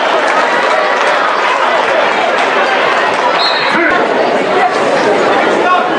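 A large crowd cheers and chatters loudly in an echoing gym.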